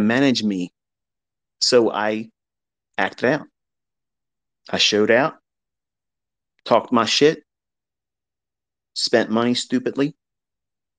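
A man speaks in short, separate phrases close to a microphone.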